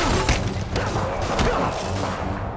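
Punches land with heavy, sharp thuds.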